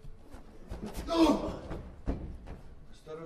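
Objects thud and rustle as they are moved about.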